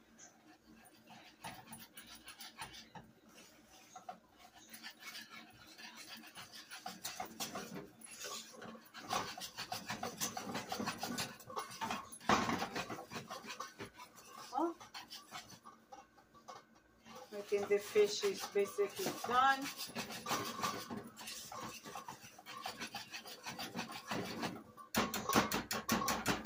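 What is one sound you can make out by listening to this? A whisk beats and scrapes quickly against a metal pan.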